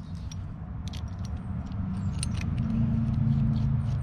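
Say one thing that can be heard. Plastic parts click and rattle as they are handled and fitted together.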